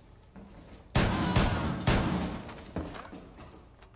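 Gunshots ring out and echo in a large room.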